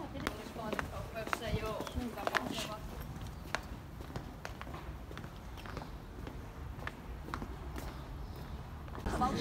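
Footsteps tap steadily on cobblestones.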